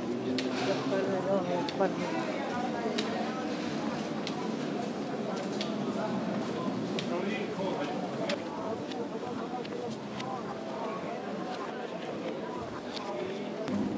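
Footsteps tap steadily on a paved pavement.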